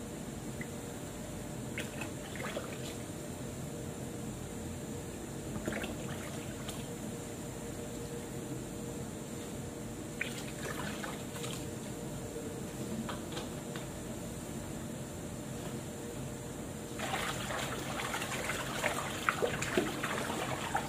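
Wet fabric is scrubbed and rubbed by hand.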